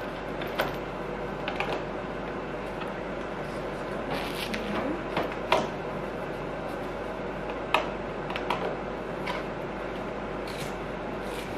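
Plastic parts click and knock as a vacuum cleaner is put together.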